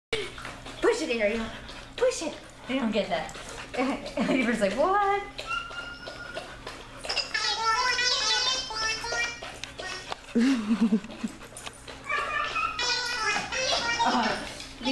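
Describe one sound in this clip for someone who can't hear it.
A woman talks to dogs nearby in a high, animated voice.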